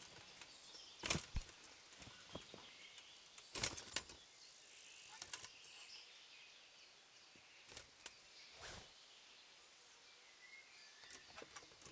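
Leaves rustle sharply as plants are pulled from the ground.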